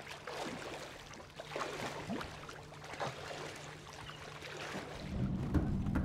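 Waves slosh and splash on open water.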